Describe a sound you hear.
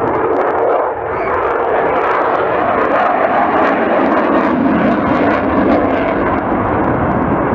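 A fighter jet's afterburners thunder as it climbs away.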